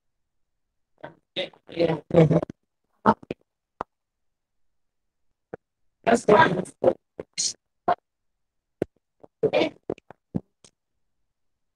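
A boy speaks with excitement nearby.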